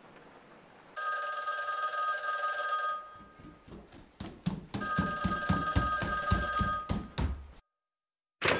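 An old telephone rings loudly.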